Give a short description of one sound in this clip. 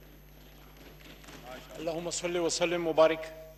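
A man speaks into a microphone, heard through a loudspeaker system.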